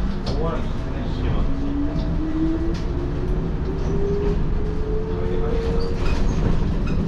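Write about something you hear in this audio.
A train's electric motor whines, rising in pitch as it speeds up.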